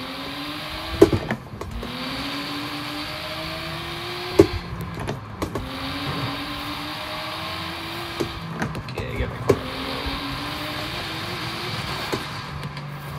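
Gear shifts clunk sharply between revs.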